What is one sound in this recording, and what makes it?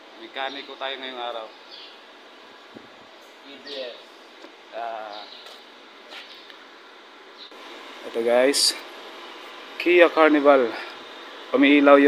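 A young man talks casually and close up, in short bursts.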